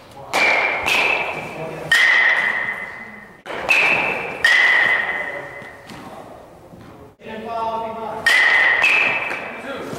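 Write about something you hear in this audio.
A metal bat pings sharply as it hits a baseball, ringing briefly in an echoing indoor space.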